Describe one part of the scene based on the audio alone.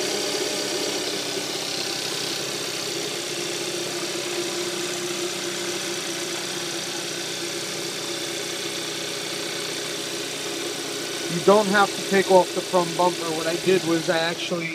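A car engine idles with a steady hum close by.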